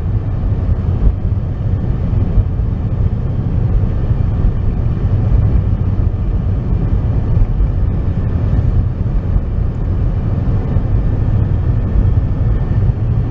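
A car engine rumbles steadily from inside the car while it drives.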